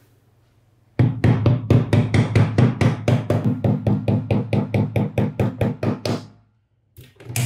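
A rubber mallet taps rapidly on a metal part.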